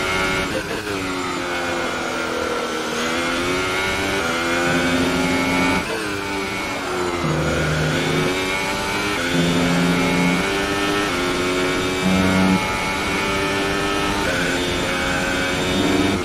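A racing car engine screams at high revs, its pitch rising through each gear and dropping as it slows for corners.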